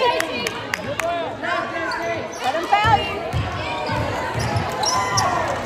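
Spectators and cheerleaders shout and cheer in an echoing gym.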